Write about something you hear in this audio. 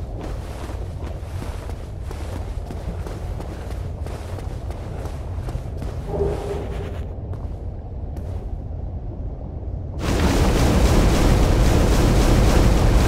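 Lava rumbles with a low, steady roar.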